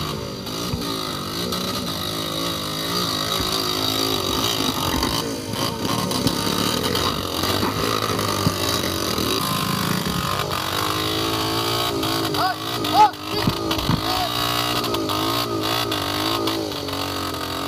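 A motorbike wheel spins and churns through thick mud.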